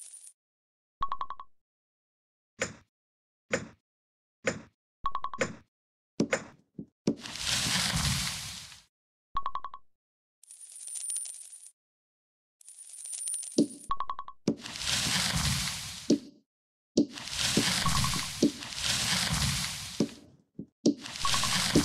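Short bright chimes ring out again and again.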